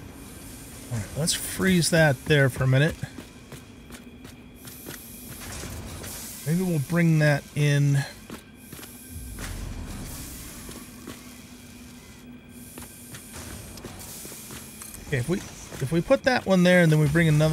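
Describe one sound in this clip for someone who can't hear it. An elderly man talks calmly into a microphone, close by.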